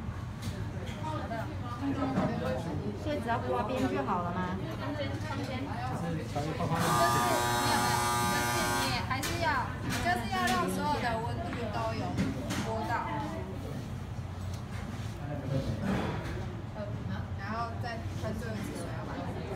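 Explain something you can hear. Women talk quietly nearby.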